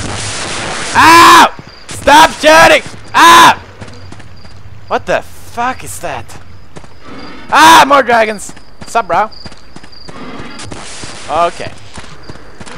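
A young man shouts and talks excitedly into a close microphone.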